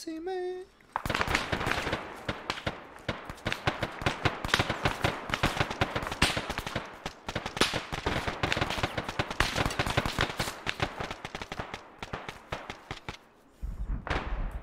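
Footsteps rustle quickly through grass and undergrowth.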